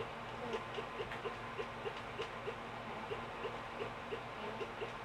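A video game plays short, rapid electronic blips.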